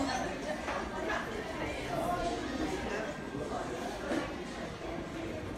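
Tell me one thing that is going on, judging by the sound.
Many people talk at once in a crowded room.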